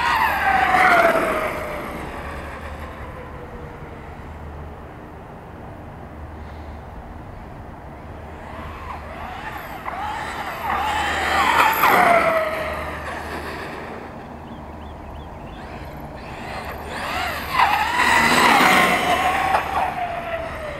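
The electric motor of an RC monster truck whines, rising and falling in pitch as the truck speeds past on asphalt.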